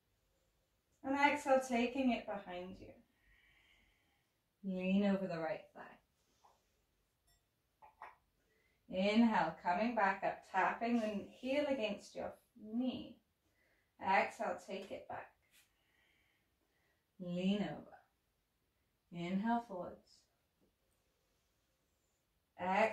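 A woman speaks calmly and slowly nearby, with pauses.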